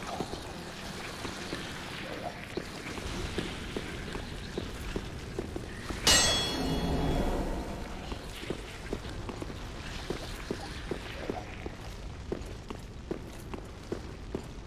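Armoured footsteps clank steadily on a stone floor.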